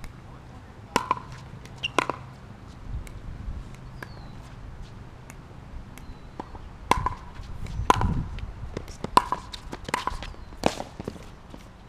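Paddles strike a ball back and forth with sharp pops outdoors.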